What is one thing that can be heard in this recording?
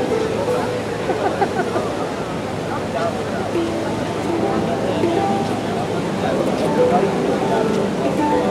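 A handpan rings out with soft, ringing metallic notes played by hand.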